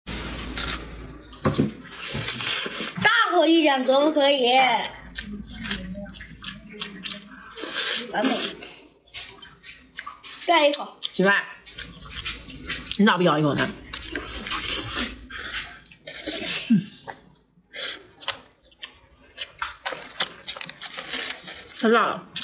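A young woman chews and smacks on meat close to a microphone.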